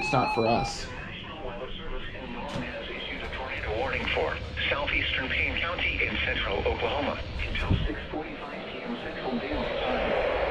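A computer-like voice reads out a warning through a small radio loudspeaker.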